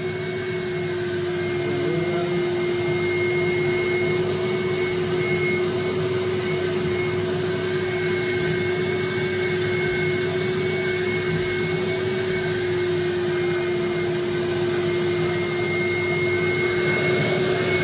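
A cleaning wand sucks water from a carpet with a loud hiss.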